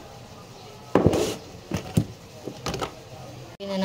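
A plastic jar knocks against a counter.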